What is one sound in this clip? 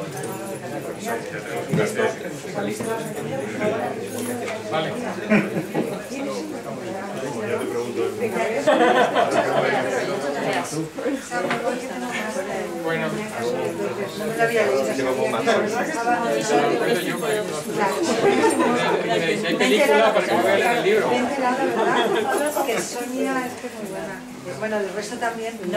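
Several men and women chat and greet one another in a room with a slight echo.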